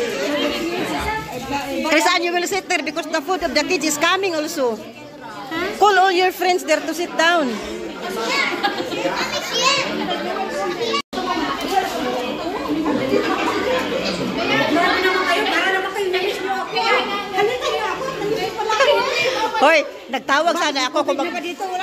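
A crowd of women and children chatters and talks close by indoors.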